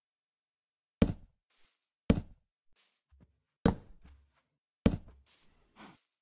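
Wooden blocks are set down with dull, heavy thuds.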